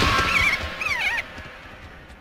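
A hawk screeches shrilly.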